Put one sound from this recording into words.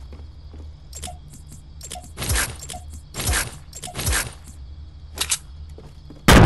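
Short clicks tick as items are chosen from a menu.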